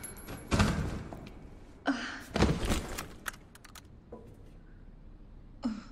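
Footsteps thud on metal stairs.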